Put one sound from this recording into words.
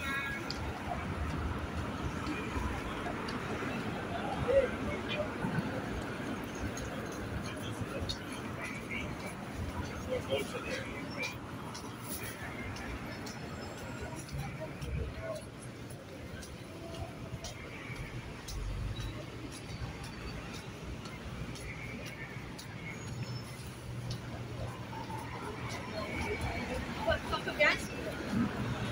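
Men and women chatter faintly among passers-by outdoors.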